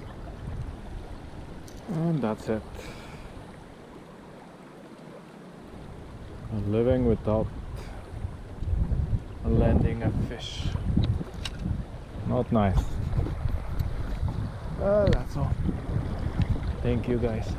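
A river rushes over stones.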